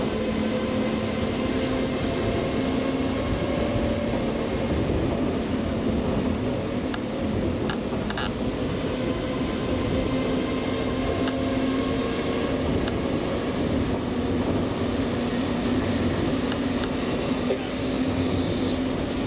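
A train rumbles steadily along the track with a low motor hum.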